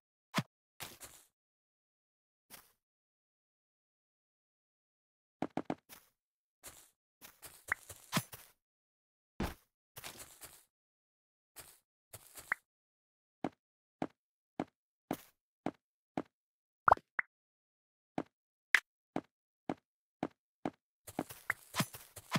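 Blocks are placed one after another with short, crisp clicks.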